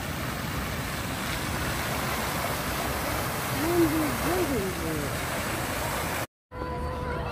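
Fountain jets splash into a pool outdoors.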